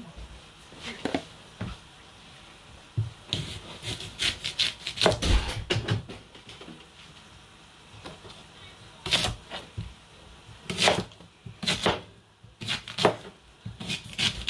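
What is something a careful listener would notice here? A knife cuts through a hard root with dull thuds on a board.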